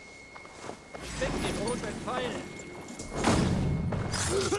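A weapon strikes hard in a sudden fight.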